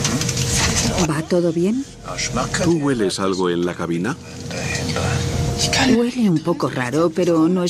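A young woman asks questions quietly and close by.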